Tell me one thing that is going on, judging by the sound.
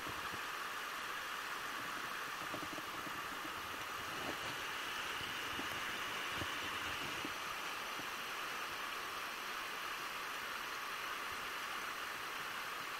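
A rushing river flows steadily over rocks close by.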